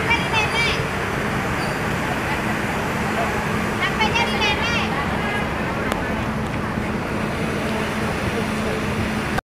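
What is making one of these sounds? A crowd of adults and children chatters outdoors nearby.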